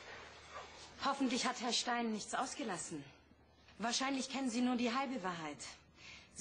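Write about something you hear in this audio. A young woman speaks up close with animation.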